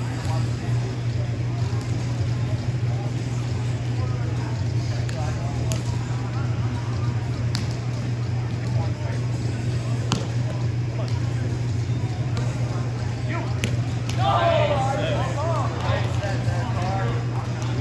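Players shout and call out to one another in a large echoing hall.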